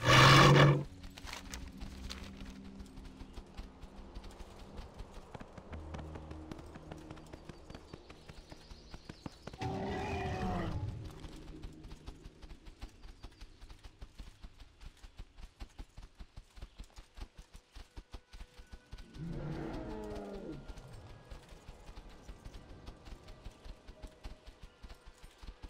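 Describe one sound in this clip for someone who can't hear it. Heavy hooves thud steadily on soft ground.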